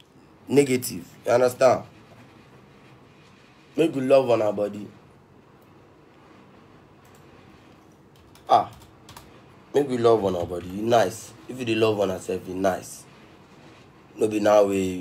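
A young man talks animatedly in short bursts, close to a phone microphone.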